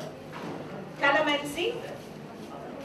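A second woman speaks loudly, close by.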